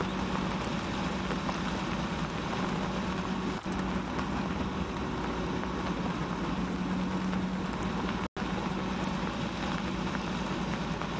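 A diesel engine drones steadily as a heavy paving machine moves slowly.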